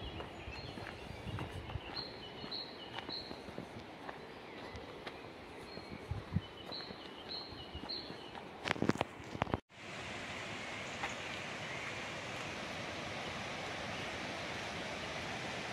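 Leaves rustle in a light wind.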